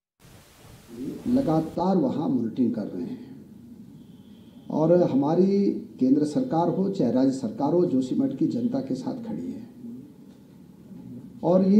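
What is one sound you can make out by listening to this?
A middle-aged man speaks calmly into microphones close by.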